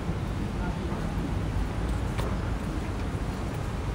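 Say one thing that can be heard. A glass door swings open.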